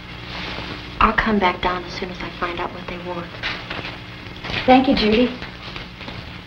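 A woman speaks softly and urgently, close by.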